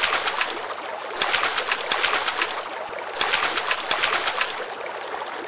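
Water splashes and churns in quick bursts.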